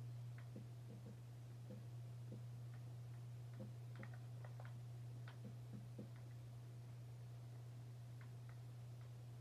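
Soft knocks of blocks being placed sound from a video game through a television speaker.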